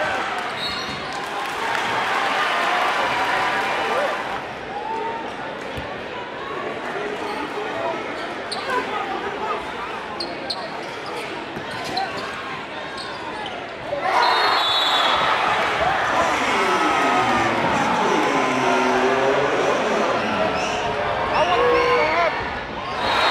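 A large crowd cheers and roars in an echoing gym.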